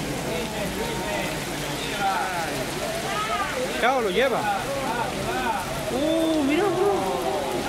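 A crowd of onlookers exclaims excitedly nearby.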